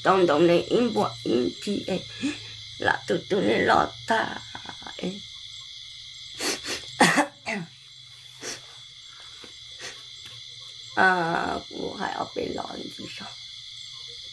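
An older woman speaks calmly close by.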